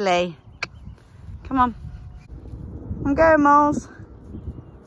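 A horse whinnies.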